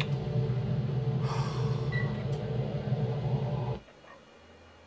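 A low engine rumbles steadily.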